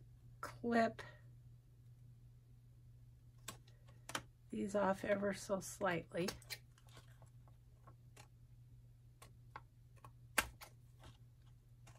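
Scissors snip through paper with small crisp cuts.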